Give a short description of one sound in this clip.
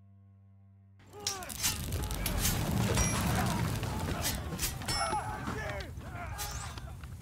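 A battle rumbles and clashes with crowd noise.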